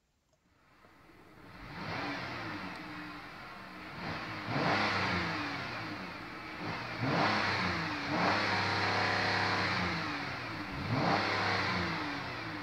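A car engine revs up and down repeatedly, roaring louder with each push.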